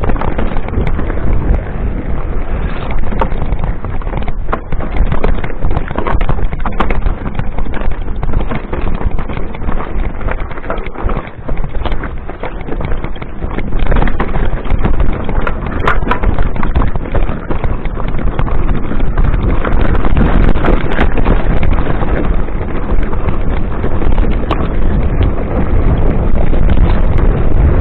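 Wind buffets the microphone as a bike rides downhill.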